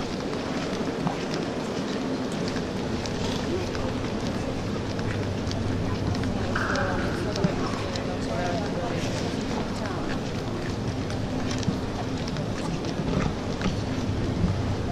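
Water laps and splashes in a large echoing hall.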